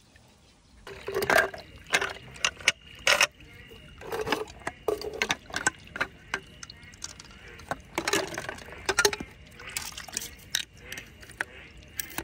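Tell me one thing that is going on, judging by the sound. Shells clink and knock against each other as they are handled.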